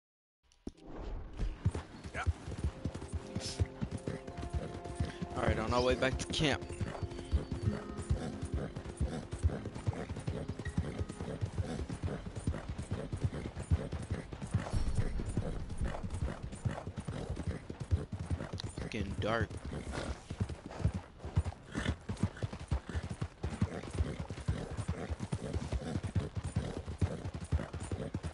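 A horse gallops steadily, hooves thudding on a dirt track.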